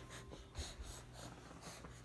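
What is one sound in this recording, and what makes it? A baby claps hands.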